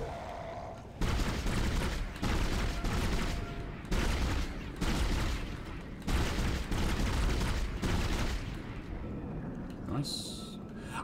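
Heavy blows thud against a creature.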